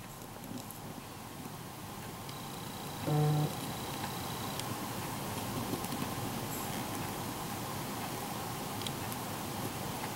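A marker pen squeaks faintly on plastic.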